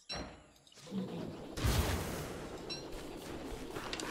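A soft whooshing puff bursts out.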